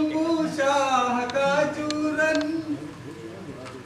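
A man speaks loudly on a stage in a reverberant hall.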